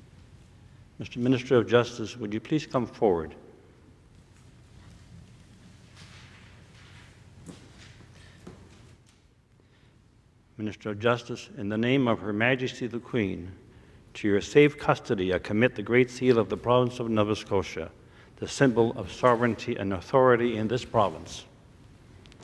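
A woman reads out calmly through a microphone in a large echoing hall.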